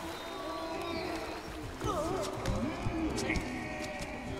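A fleshy creature squelches wetly as it crawls.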